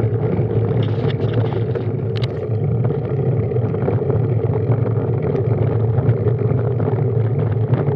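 Road bike tyres hum on tarmac.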